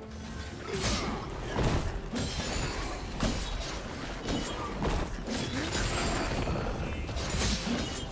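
Video game spell effects whoosh and crackle during a fight.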